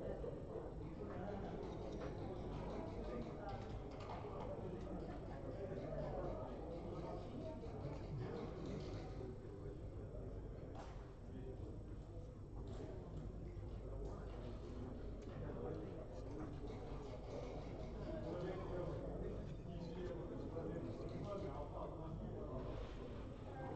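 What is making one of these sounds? Checkers click and clack against a wooden board.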